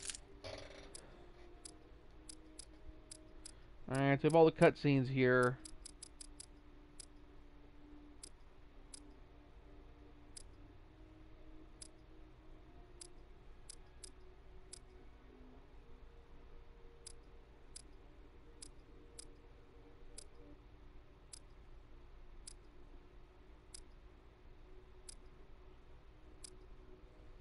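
Short electronic menu clicks tick at uneven intervals.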